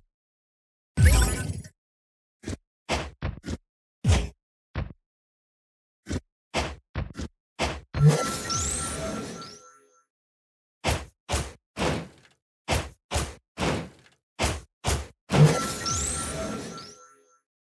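A game character whooshes as it runs and dashes.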